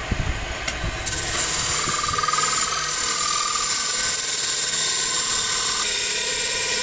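A chisel scrapes against spinning wood.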